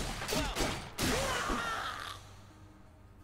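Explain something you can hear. A game character shouts loudly.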